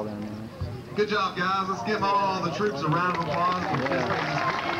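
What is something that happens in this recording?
A man speaks through a microphone over a loudspeaker.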